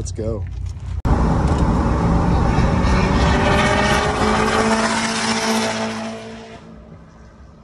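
A truck engine roars as it speeds up.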